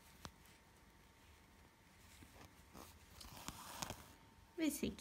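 Thread rasps softly as it is pulled through cloth.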